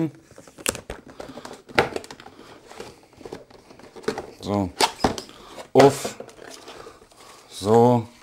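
Cardboard rustles and knocks as a box is opened.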